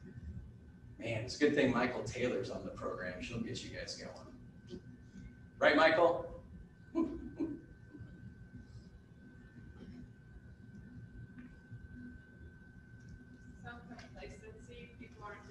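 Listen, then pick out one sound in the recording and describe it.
A man speaks in a large echoing hall, pausing between phrases.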